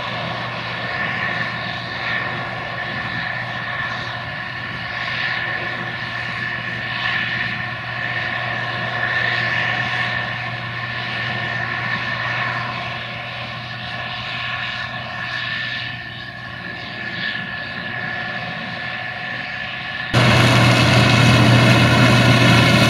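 A combine harvester engine drones steadily and loudly.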